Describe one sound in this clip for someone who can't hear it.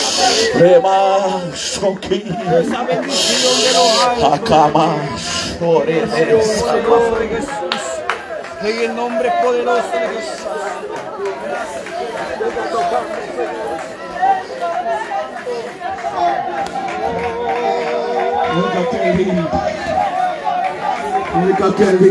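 A crowd of men and women prays aloud together outdoors, many voices overlapping with fervour.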